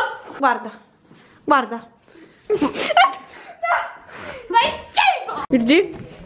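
Young women laugh close by.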